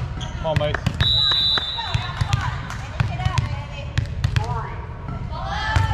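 A volleyball bounces repeatedly on a wooden floor.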